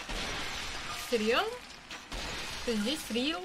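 A young woman speaks briefly and with animation, close to a microphone.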